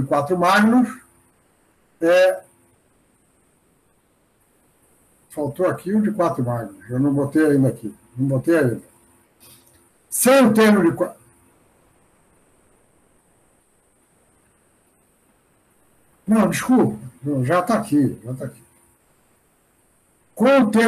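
An older man speaks calmly through an online call, in bursts with pauses.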